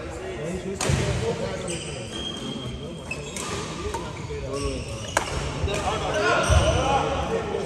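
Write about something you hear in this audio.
Men talk and call out across the court.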